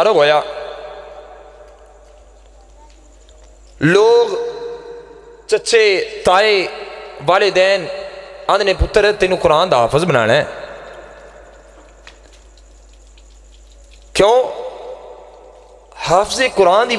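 A young man chants in long melodic phrases through a microphone, with a loud echo trailing each phrase.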